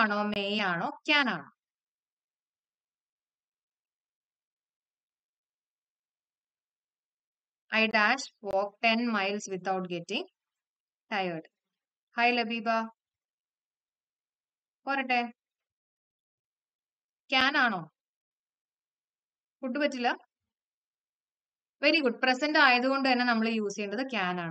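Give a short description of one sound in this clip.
A young woman speaks calmly into a close microphone, in short bursts with pauses.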